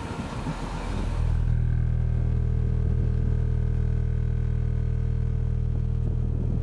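Subwoofers boom a deep, steady bass tone.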